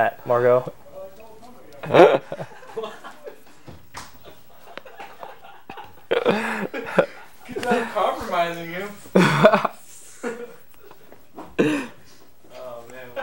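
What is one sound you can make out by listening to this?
Two young men talk and joke with animation into microphones.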